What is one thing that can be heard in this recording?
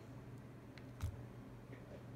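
A phone button clicks softly under a fingertip.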